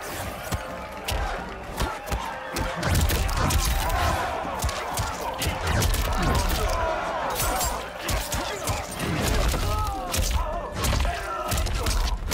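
Punches and kicks land with sharp, heavy thuds in quick succession.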